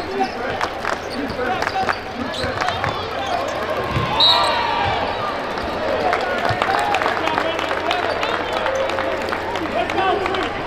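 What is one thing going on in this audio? A crowd cheers and chatters in a large echoing arena.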